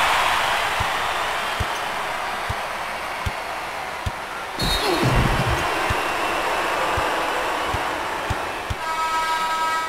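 A basketball bounces steadily on a wooden court.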